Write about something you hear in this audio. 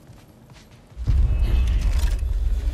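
A low rumbling hum swells loudly.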